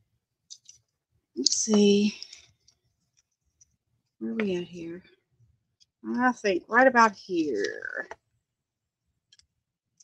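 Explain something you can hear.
Paper rustles and crinkles softly as it is handled.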